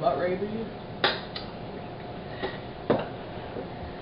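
A fork clinks against a plate.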